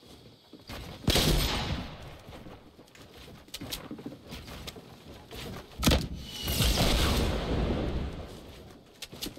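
Loud blasts boom from a rocket launcher.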